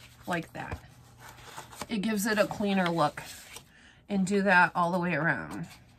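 Stiff paper rustles and slides as it is handled.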